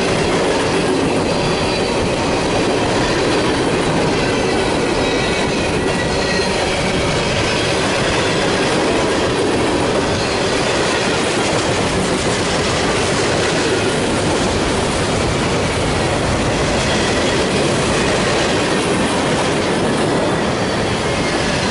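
A long freight train rumbles past close by, its wheels clattering steadily on the rails.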